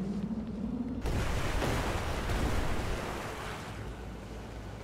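Tornadoes roar with rushing wind.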